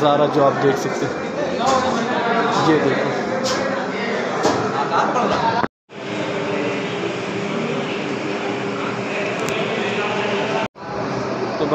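A crowd of men and boys chatters in a large echoing hall.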